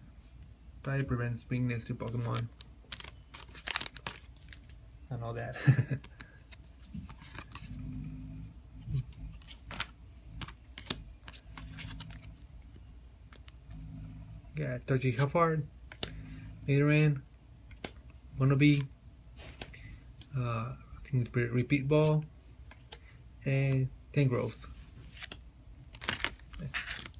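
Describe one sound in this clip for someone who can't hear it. Cards rustle and click as they are handled.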